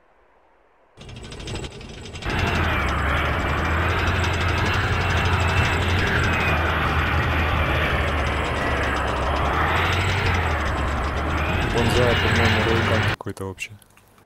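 A tank engine rumbles loudly and steadily.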